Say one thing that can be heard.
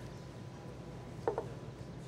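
A tablet clicks softly onto a wooden table.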